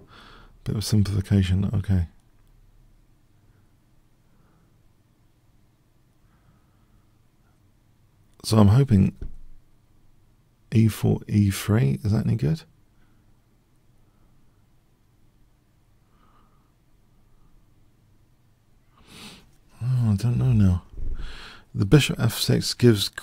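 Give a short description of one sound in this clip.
A middle-aged man talks thoughtfully in bursts, close to a microphone.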